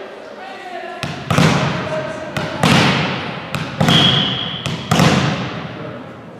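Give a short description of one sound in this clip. A volleyball bounces on the floor with a ringing echo in a large hall.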